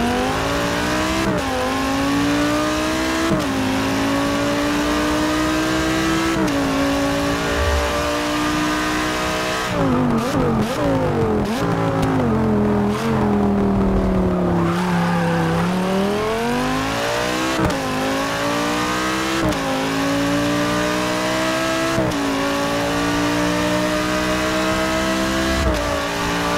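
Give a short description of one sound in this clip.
A racing car engine roars loudly, climbing in pitch through the gears and dropping sharply at each gear change.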